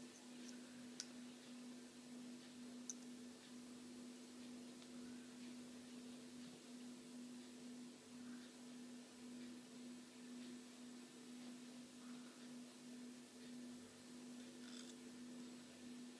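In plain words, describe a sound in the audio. Small metal wires click and tick faintly as hands bend and twist them.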